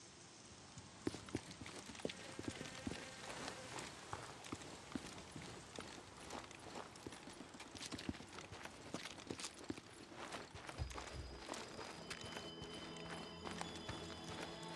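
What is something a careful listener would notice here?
Footsteps crunch through dry grass and gravel.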